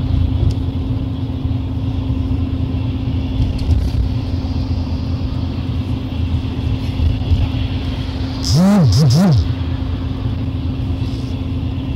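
A moving vehicle rumbles and hums steadily from inside.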